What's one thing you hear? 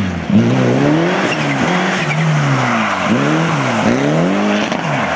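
A rally car engine revs hard, rising and falling repeatedly.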